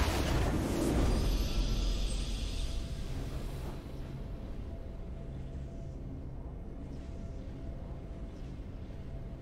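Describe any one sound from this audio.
A triumphant victory fanfare plays and fades.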